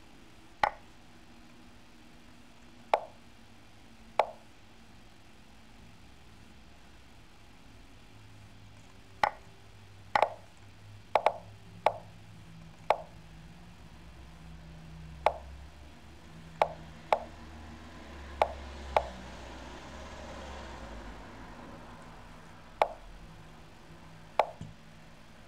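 Sharp clicks sound as chess pieces are moved in a computer game.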